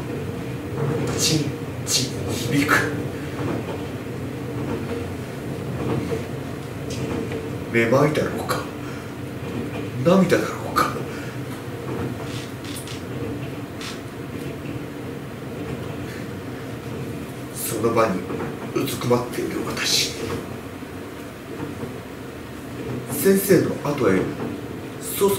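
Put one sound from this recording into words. A woman reads aloud calmly nearby.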